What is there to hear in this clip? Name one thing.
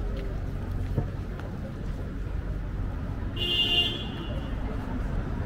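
Low traffic rumbles steadily outdoors in a street.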